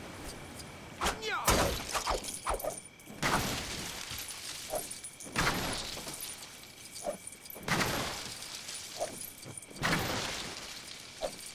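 A magic beam crackles and zaps in repeated bursts.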